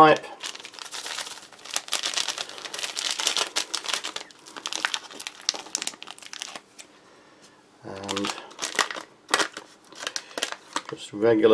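A foil packet crinkles and rustles in hands.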